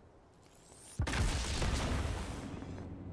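A blast booms and hisses close by.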